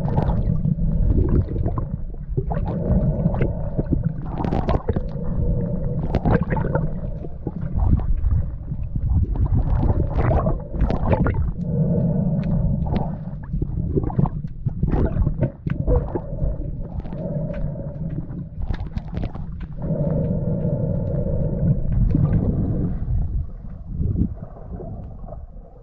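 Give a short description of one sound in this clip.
Water swirls and bubbles, heard muffled from underwater.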